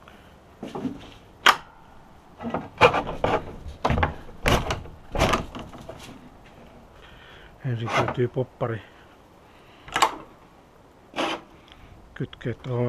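Hands knock and tap against wooden boards.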